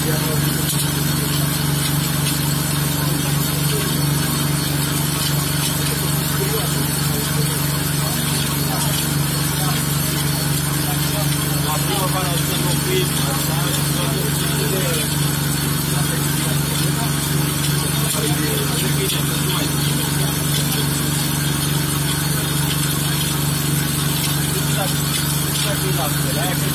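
A generator hums steadily nearby.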